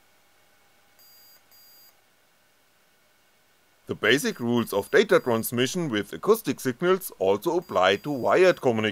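Small electronic buzzers beep in short, high bursts.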